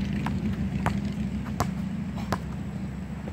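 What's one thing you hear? A basketball bounces on an outdoor court.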